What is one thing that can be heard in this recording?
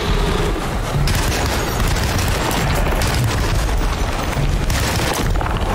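A pistol fires sharp shots.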